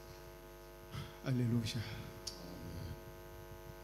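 A man speaks briefly at a distance.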